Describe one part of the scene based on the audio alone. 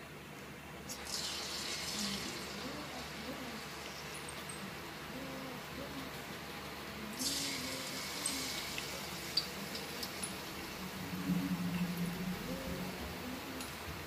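Batter sizzles as it drops into hot oil.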